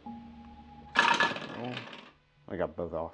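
Dice clatter down through a plastic dice tower.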